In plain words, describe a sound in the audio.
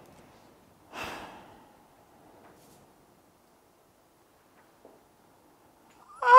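A young woman sobs and cries out in distress.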